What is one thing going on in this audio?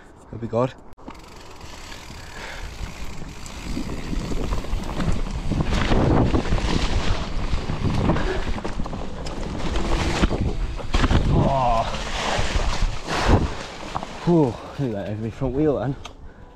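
Bicycle tyres roll and rattle over a bumpy dirt trail.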